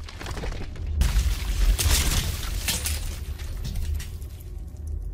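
Heavy stone slabs crack and crumble apart with a deep rumble.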